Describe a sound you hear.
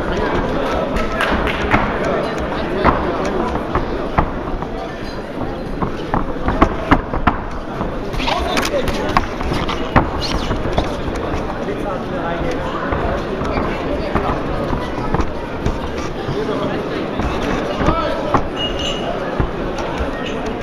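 A crowd cheers and shouts loudly throughout.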